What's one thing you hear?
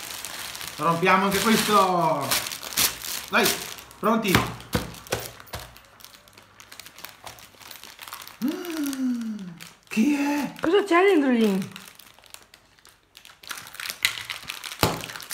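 Foil wrapping crinkles.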